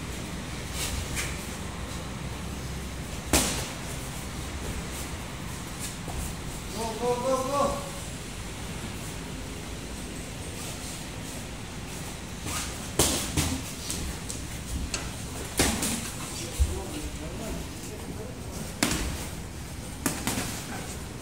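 Boxing gloves thud against headgear and bodies in sharp bursts.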